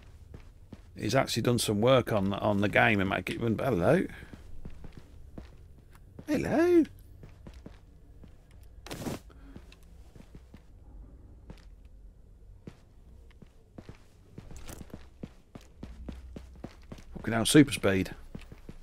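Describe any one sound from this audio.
An elderly man talks with animation into a microphone.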